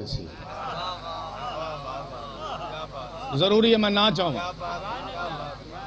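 A man speaks passionately into a microphone, his voice rising into a loud, drawn-out cry.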